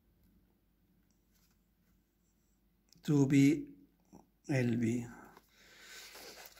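A pen scratches on paper as someone writes.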